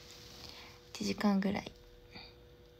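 A young woman speaks briefly and softly close to a microphone.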